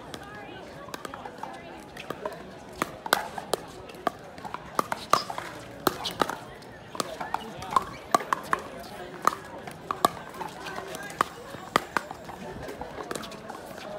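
Sneakers scuff and squeak on a hard court.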